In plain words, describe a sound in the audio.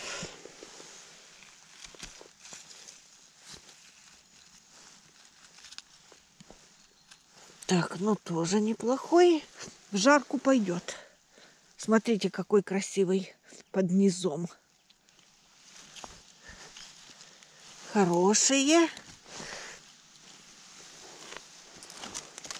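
A knife cuts through a mushroom stem.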